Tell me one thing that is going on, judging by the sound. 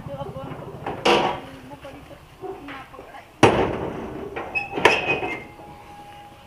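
A metal gate creaks and clangs shut.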